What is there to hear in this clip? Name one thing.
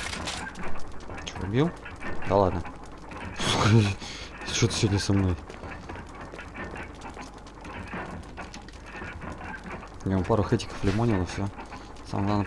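A young man talks through a headset microphone.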